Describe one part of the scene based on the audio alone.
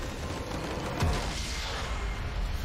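A big structure explodes with a booming blast.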